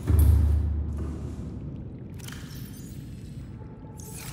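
A locker door swishes open with a soft mechanical whoosh.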